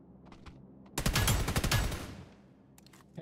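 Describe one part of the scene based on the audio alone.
A rifle fires a quick burst of loud gunshots.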